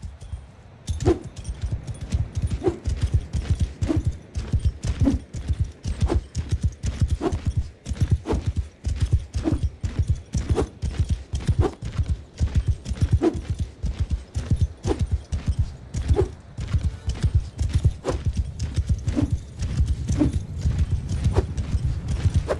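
A camel's hooves thud in a steady gallop.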